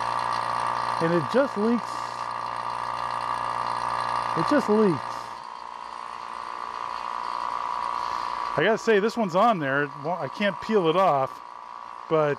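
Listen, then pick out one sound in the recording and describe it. A vacuum pump motor hums steadily close by.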